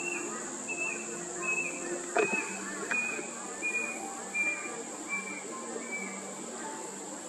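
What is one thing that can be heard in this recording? A young cockatoo gives repeated high, wailing begging calls.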